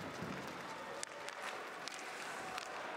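A hockey stick strikes a puck.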